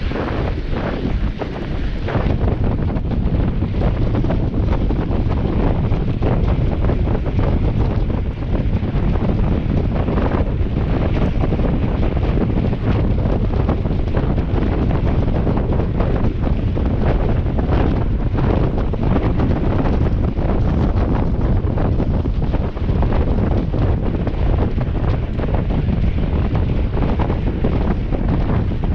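Wind rumbles loudly across a microphone.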